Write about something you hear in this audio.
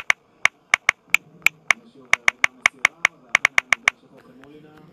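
Keyboard taps click quickly and sharply.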